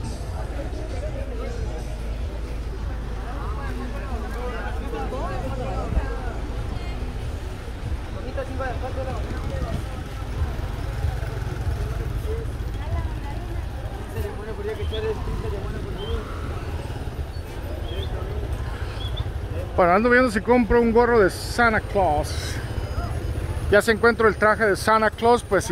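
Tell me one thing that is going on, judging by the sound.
Motorcycle engines rumble past slowly.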